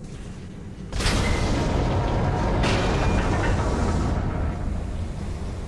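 A loud explosion bursts and roars.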